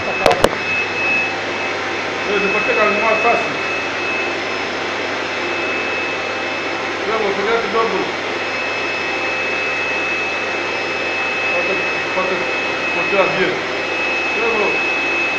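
A gas torch flame roars.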